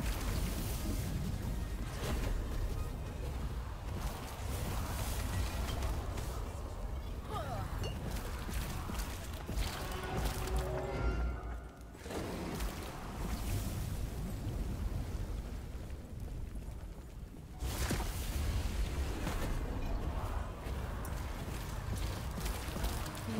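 Fiery spells roar and crackle in quick bursts.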